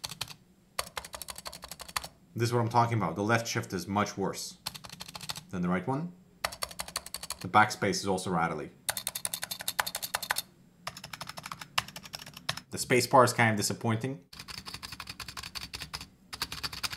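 Keyboard keys click and clatter rapidly under typing fingers.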